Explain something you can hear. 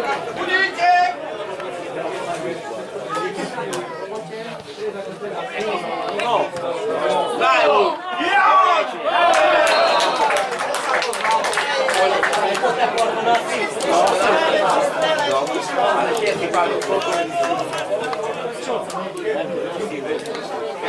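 Men call out and talk across an open outdoor field.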